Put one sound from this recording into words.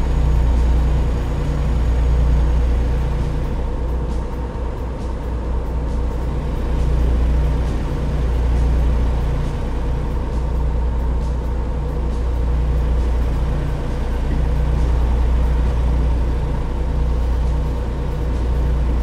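A truck engine drones steadily at a low pitch.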